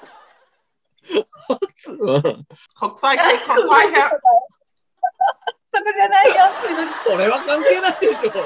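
Several women laugh over an online call.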